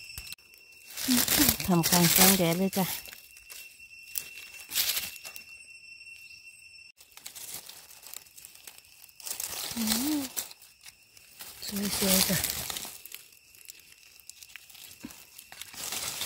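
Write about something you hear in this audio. Dry leaves rustle and crunch close by.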